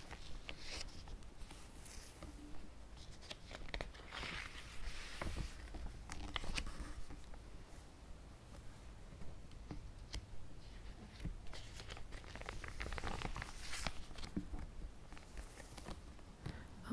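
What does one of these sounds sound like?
Plastic binder pages rustle and crinkle as they are turned.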